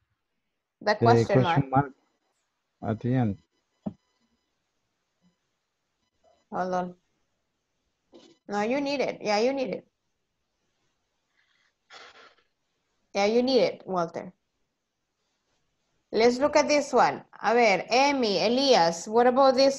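A woman speaks clearly and calmly through an online call, in short phrases with pauses.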